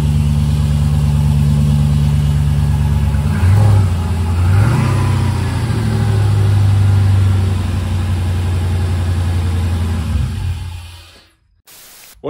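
A car engine idles with a low rumble and revs briefly twice.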